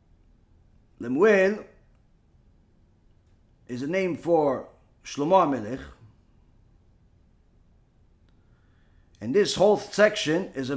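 A man reads aloud in a chanting voice, close to a microphone, in short phrases.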